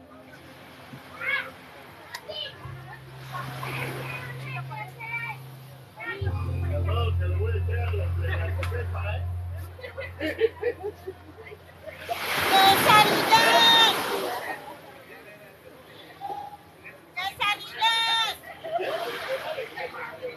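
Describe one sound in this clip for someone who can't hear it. A man talks outdoors close by.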